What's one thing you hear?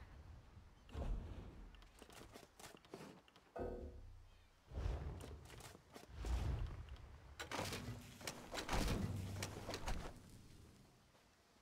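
Tools knock and scrape on wood in short bursts.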